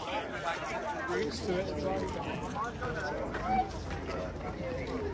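Several men and women chatter nearby outdoors.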